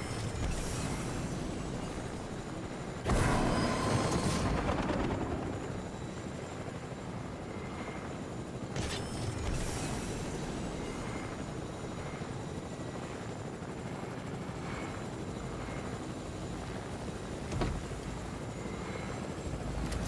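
A helicopter's rotor whirs steadily overhead.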